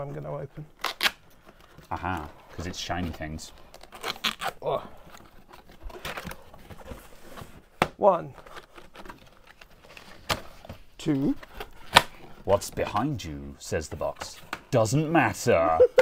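Plastic packaging clicks and knocks on a desk.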